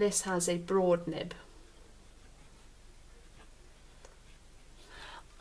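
A pen nib scratches softly across paper.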